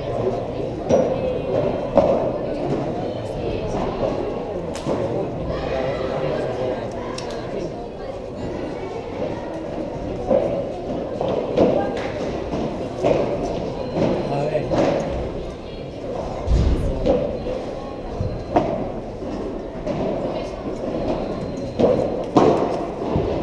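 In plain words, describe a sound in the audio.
Paddle rackets hit a ball back and forth with sharp pops, echoing in a large hall.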